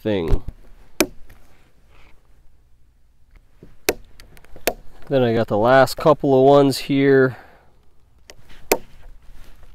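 A hole punch clicks sharply as it bites through leather.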